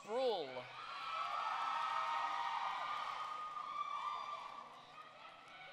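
A crowd cheers in a large echoing hall.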